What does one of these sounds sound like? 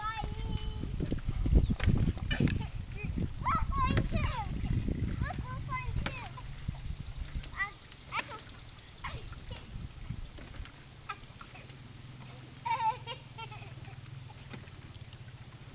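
Young girls talk and squeal with excitement.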